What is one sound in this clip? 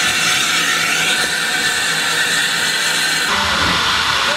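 A steam locomotive hisses loudly.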